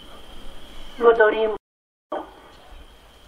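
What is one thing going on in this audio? A man chants briefly into a microphone, heard through a loudspeaker.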